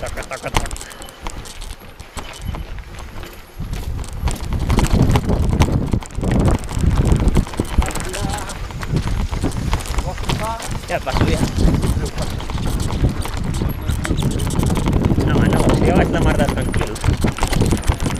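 Bicycle tyres crunch and rumble over a gravel track.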